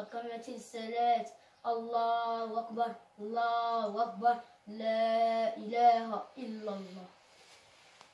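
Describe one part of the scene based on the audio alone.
A man chants a prayer in a steady, sung voice close by.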